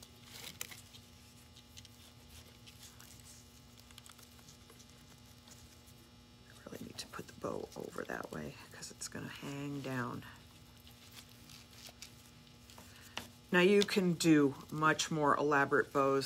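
Pine sprigs and ribbon rustle in someone's hands.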